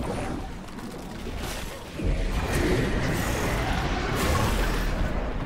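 Magic spells crackle and boom in a video game battle.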